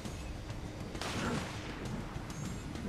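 A body plunges into water with a splash.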